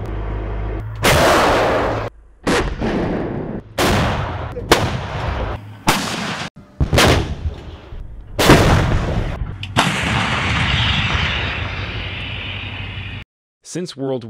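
A large gun fires with loud, booming blasts.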